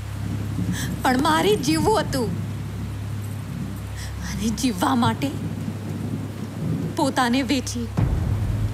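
A young woman speaks tensely and emotionally, close by.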